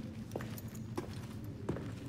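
Footsteps tread slowly on a stone floor.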